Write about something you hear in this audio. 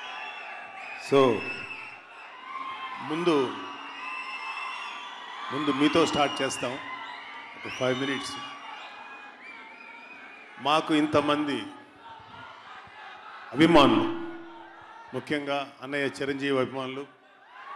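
A middle-aged man speaks with animation through a microphone and loudspeakers in a large echoing hall.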